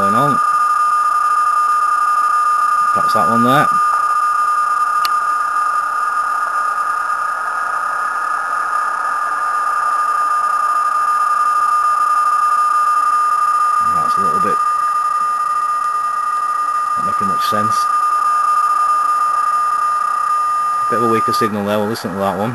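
A radio plays a steady, high data tone.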